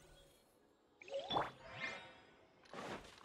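A bright magical chime shimmers and rises.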